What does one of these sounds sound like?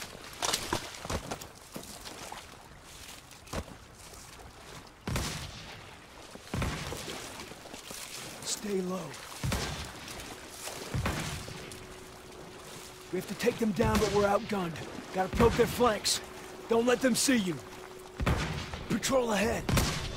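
Footsteps crunch over leaves and undergrowth.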